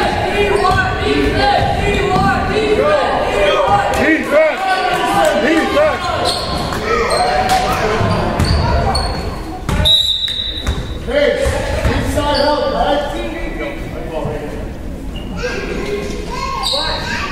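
Several people shout and cheer in a large echoing gym.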